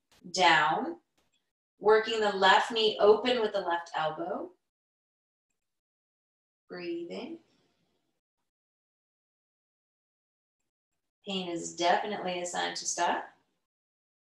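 A woman speaks calmly and slowly, close to a microphone, with pauses.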